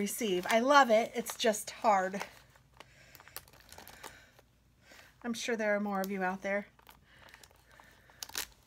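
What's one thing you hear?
A plastic sheet crinkles and rustles as it is handled.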